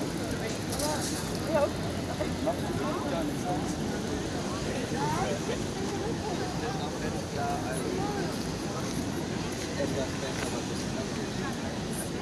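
A crowd of people chatters in the open air.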